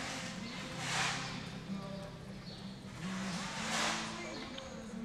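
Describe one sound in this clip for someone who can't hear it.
A horse's hooves thud softly on dirt at a lope.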